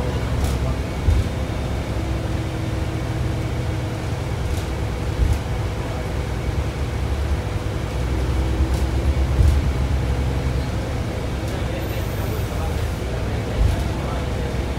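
Wheels clack and thump now and then on the rails.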